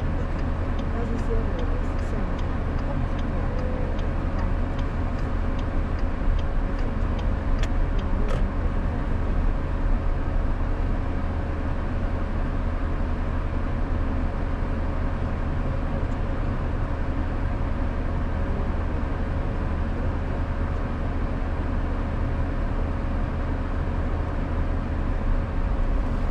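A car engine hums steadily from inside a slowly moving car.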